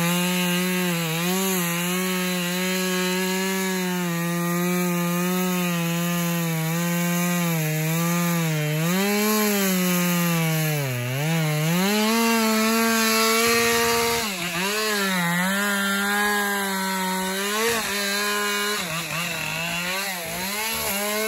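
A chainsaw engine roars and revs up and down close by.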